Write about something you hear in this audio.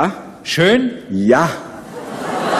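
An elderly man speaks loudly into a microphone.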